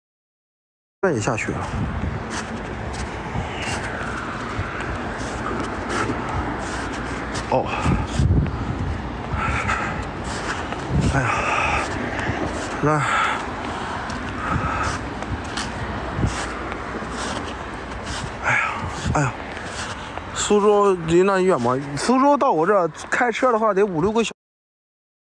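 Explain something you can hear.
Footsteps crunch through fresh snow.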